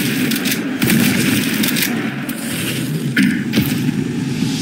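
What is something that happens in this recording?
A shotgun fires with loud, sharp blasts.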